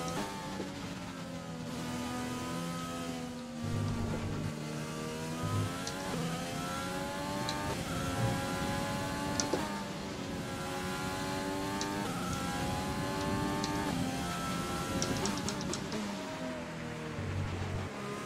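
A racing car engine whines loudly, rising in pitch and dropping sharply with each gear change.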